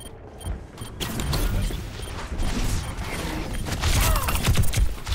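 Twin pistols fire rapid shots.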